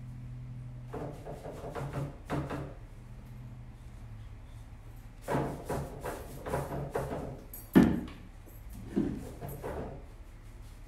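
A tool scrapes and taps against wood.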